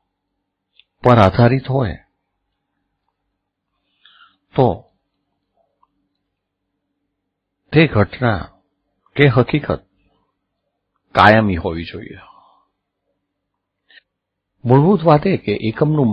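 An older man speaks calmly into a close microphone, in short phrases with pauses.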